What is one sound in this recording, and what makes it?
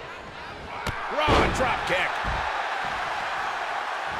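A wrestler slams hard onto a ring mat with a heavy thud.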